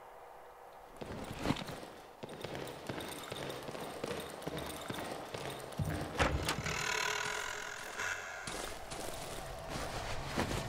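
Footsteps shuffle and crunch steadily.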